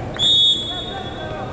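A referee's whistle blows a short, sharp blast.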